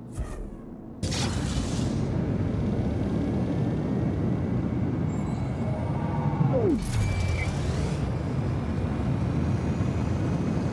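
A spaceship engine roars steadily.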